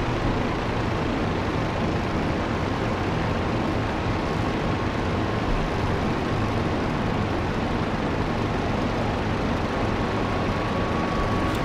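Wind rushes hard past an open cockpit.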